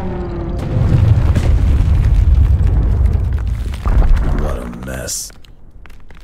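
Debris and rocks clatter and tumble down.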